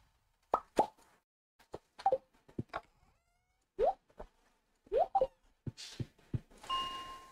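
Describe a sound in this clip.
Short electronic game blips and chimes sound in quick succession.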